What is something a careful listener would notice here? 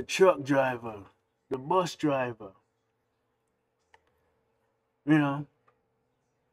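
A man speaks in short phrases close to a microphone.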